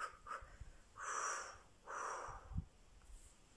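A woman blows out air in soft breathy puffs.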